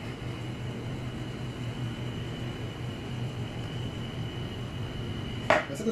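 Milk pours softly into a cup.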